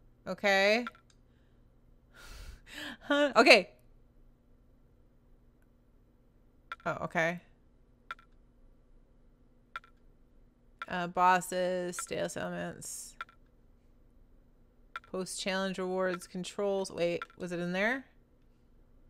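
A young woman talks with animation, close to a microphone.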